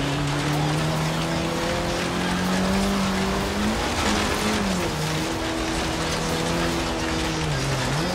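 Tyres crunch and hiss over loose dirt.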